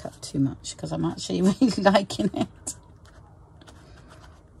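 A paper towel rubs and dabs against paper.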